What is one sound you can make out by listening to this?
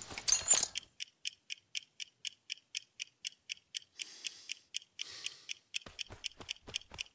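A pocket watch ticks steadily.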